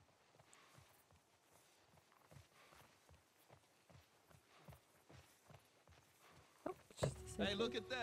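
Footsteps crunch steadily through grass and undergrowth.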